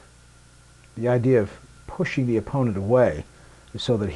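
A man speaks loudly and firmly.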